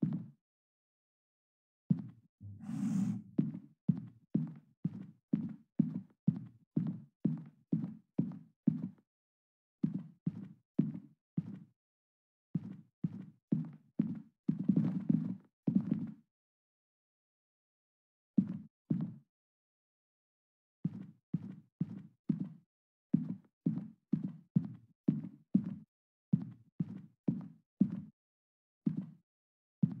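Footsteps thud at a steady walking pace on a hard floor, pausing now and then.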